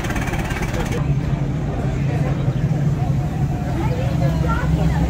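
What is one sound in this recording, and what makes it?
A second muscle car's engine rumbles as it approaches.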